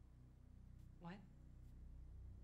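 A second young woman speaks briefly and anxiously.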